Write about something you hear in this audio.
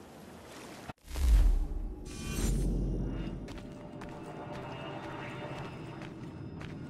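Wind blows strongly outdoors.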